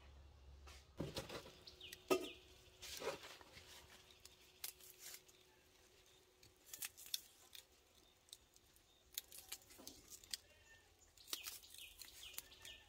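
Fresh leaves rustle and tear in someone's hands.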